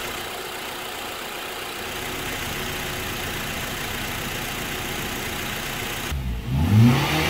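A car engine idles steadily close by.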